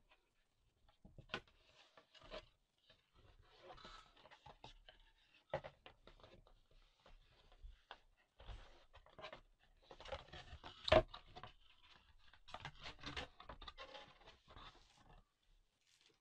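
Cardboard slides and scrapes as a box is opened by hand.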